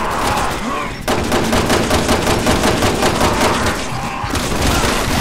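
A handgun fires rapid shots in a row.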